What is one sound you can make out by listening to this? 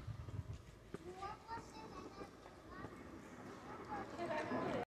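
A young child chatters nearby outdoors.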